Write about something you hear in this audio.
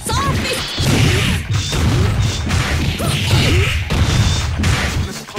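Punches and kicks land with sharp, heavy hits in quick bursts.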